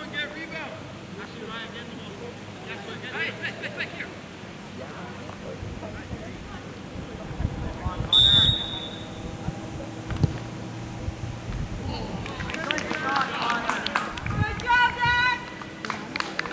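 Young men shout across an open field outdoors.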